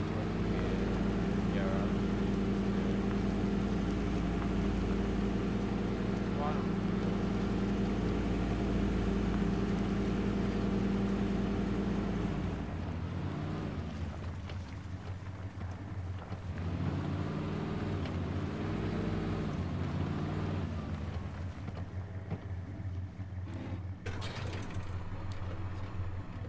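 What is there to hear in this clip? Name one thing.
A truck engine drones steadily and rises and falls in pitch as it drives.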